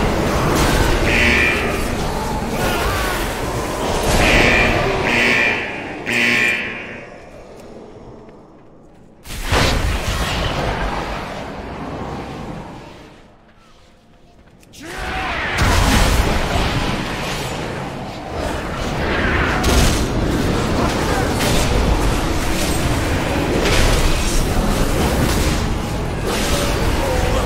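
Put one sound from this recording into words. A man talks with animation through a headset microphone.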